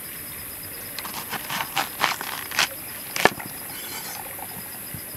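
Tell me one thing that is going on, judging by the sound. A knife cuts through a cabbage with crisp crunches.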